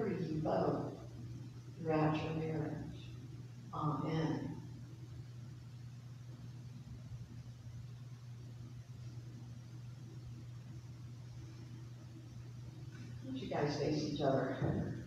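A man speaks calmly in a large echoing hall, heard from a distance.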